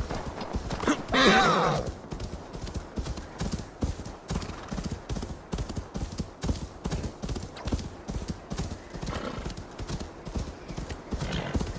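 A horse's hooves thud steadily through snow.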